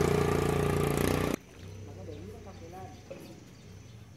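A small fish splashes into water.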